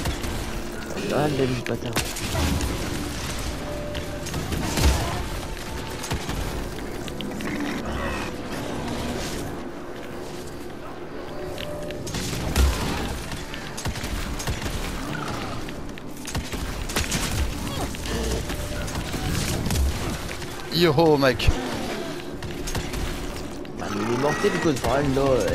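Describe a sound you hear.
A creature shrieks and growls.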